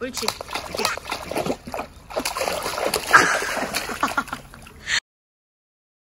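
A dog paws and splashes at water.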